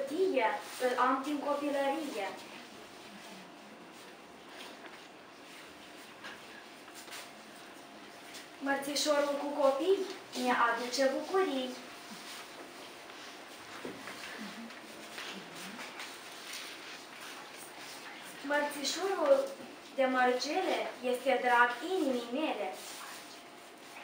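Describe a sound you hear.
A young girl sings in a clear voice, in short phrases.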